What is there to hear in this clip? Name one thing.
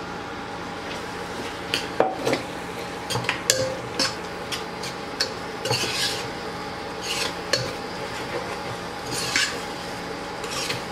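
Food sizzles in a pot.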